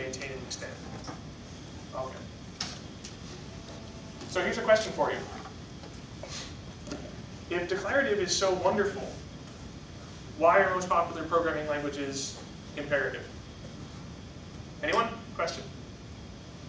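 A man speaks calmly to an audience, pausing between phrases.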